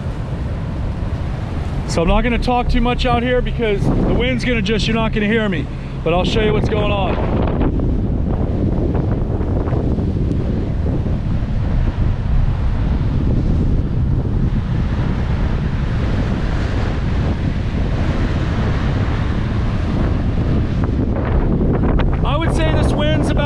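Heavy surf crashes on the shore.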